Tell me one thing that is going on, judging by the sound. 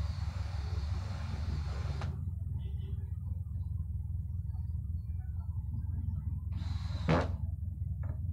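A cordless drill whirs as it drives screws into wood.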